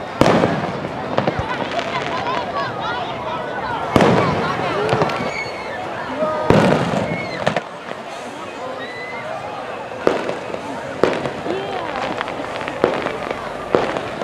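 Fireworks boom and crackle outdoors.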